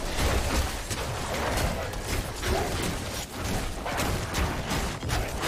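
Electric blasts crackle and heavy blows thump in a rapid fight.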